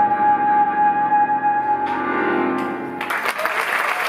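An accordion plays a melody.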